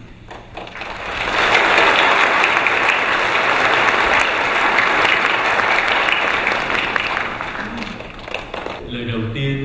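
People clap their hands in an echoing hall.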